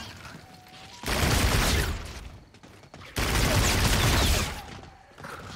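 A gun fires rapid loud bursts of shots.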